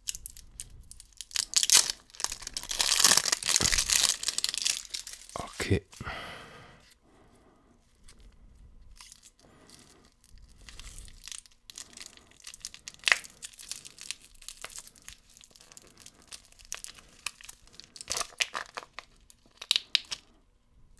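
Plastic wrapping crinkles and rustles close up.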